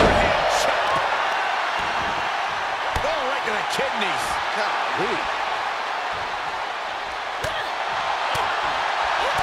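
Bodies thud onto a wrestling ring mat.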